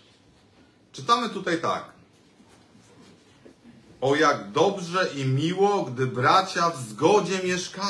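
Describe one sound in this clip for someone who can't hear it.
A man speaks calmly into a microphone in a reverberant room.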